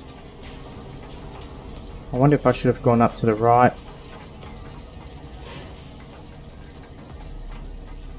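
A metal lift hums and rattles as it rises.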